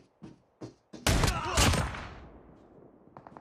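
Gunfire bursts loudly in a rapid volley and echoes away.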